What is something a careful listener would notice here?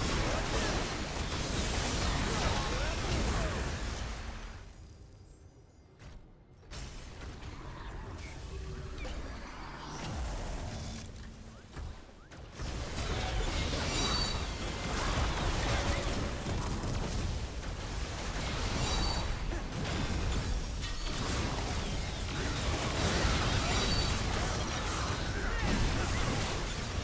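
Game spell effects whoosh, crackle and blast in a busy battle.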